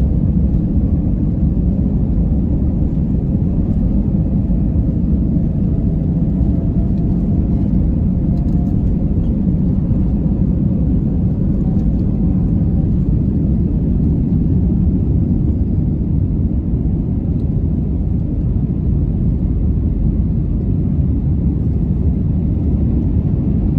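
Jet engines roar loudly and steadily inside an aircraft cabin.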